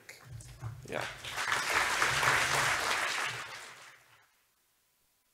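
An audience applauds in a large echoing hall, then the clapping dies away.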